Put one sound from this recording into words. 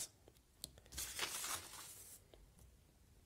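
A sheet of paper rustles and slides across a table.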